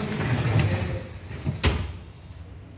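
A roller shutter rattles as it slides shut, ending with a sharp clack.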